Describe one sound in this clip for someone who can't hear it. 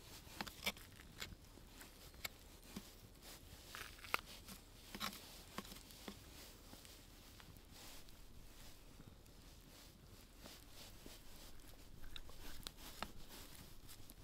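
A knife cuts and scrapes through raw fish with soft clicks and taps.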